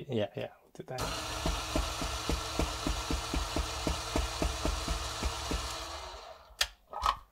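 A coffee grinder whirs steadily and grinds beans.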